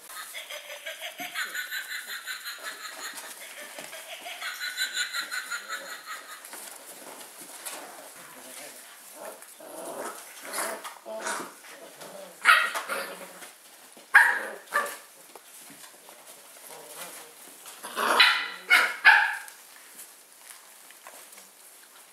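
Small paws patter and scuffle on a wooden floor.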